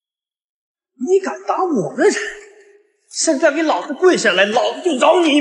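A young man shouts angrily up close.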